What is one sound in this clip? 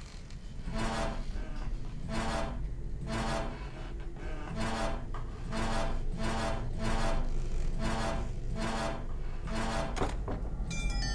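Metal rings grind and whir as they turn one after another.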